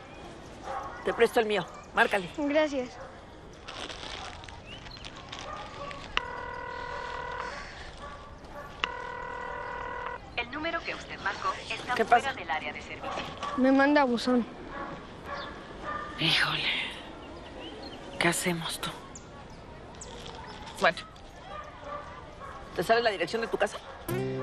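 A woman speaks nearby in a firm, animated voice.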